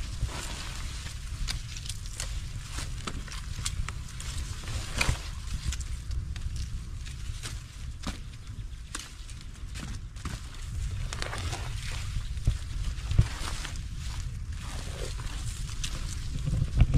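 Leaves rustle and stems snap as a person picks crops by hand.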